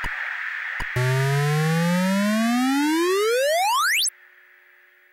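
A retro computer game plays a buzzing electronic tone that sweeps steadily up in pitch.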